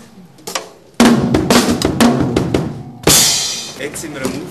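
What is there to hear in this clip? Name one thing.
A drummer plays a drum kit with loud cymbal crashes.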